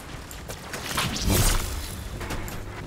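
Electricity crackles and buzzes sharply.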